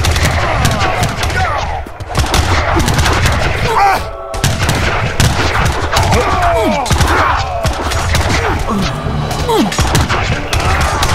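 Game soldiers shout and cry out in battle.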